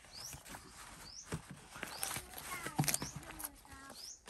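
Leaves tap and crackle as hands press them flat.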